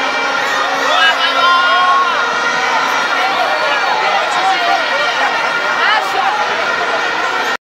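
Young men and women chatter and call out close by.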